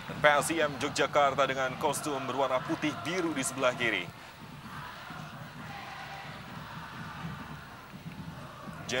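A large crowd murmurs and cheers in the distance.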